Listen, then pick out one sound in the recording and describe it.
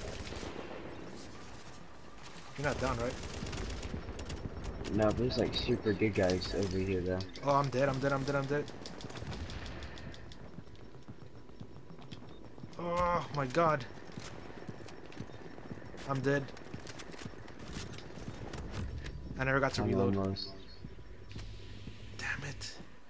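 Rifles fire in rapid bursts of gunshots.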